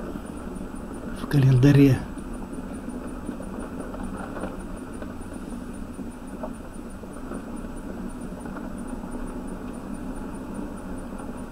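Tyres rumble over a rough, wet road.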